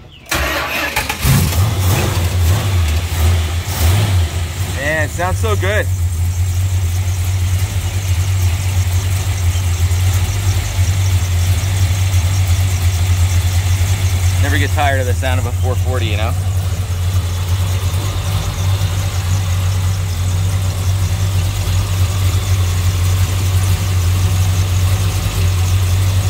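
A car engine idles with a steady, deep rumble close by.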